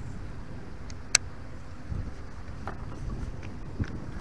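A fishing reel clicks as its handle is turned.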